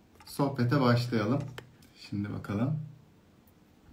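A man speaks calmly and close to the microphone.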